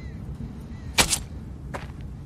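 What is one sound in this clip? A knife stabs into a body with a sharp thud.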